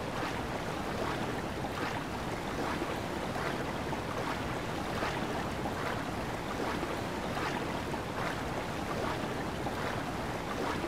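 Water rushes steadily.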